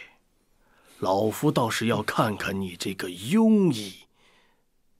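An older man speaks sternly, close by.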